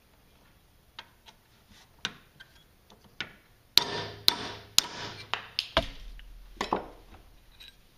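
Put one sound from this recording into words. A hammer taps a metal punch with sharp clinks.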